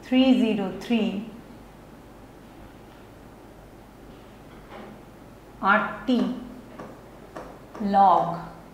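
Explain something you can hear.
A young woman speaks calmly and explains, in short phrases with pauses.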